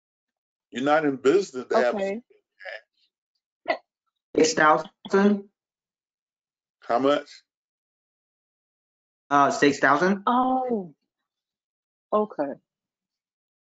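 A woman speaks calmly in short phrases over an online call.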